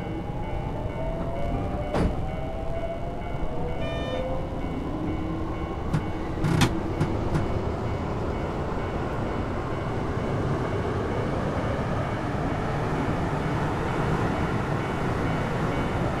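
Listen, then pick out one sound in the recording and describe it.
Train wheels rumble along the tracks, growing steadily louder.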